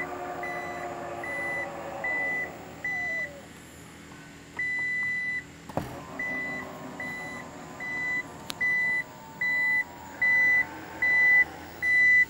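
A car's power tailgate whirs as its motor moves it.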